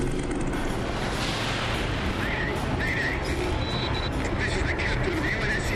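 A huge spaceship's engines rumble deeply overhead.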